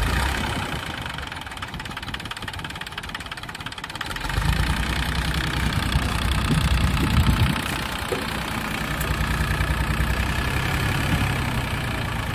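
A small tractor engine chugs steadily and revs up.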